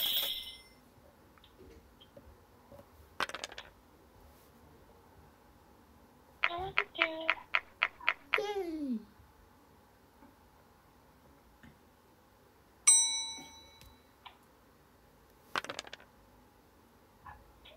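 Dice tumble and clatter onto a game board.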